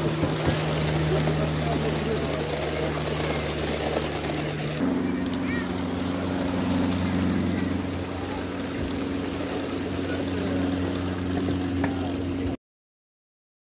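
A model train rattles along its track.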